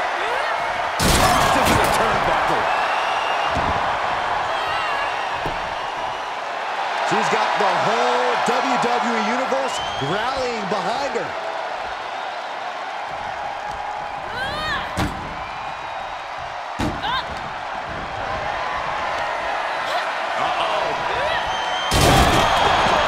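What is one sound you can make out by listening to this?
Heavy thuds ring out as bodies slam onto a ring mat.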